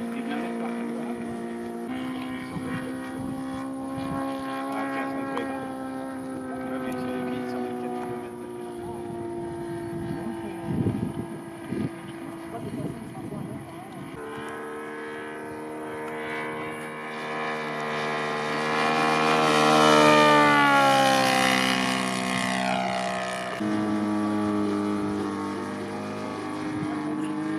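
A propeller plane's piston engine drones steadily overhead.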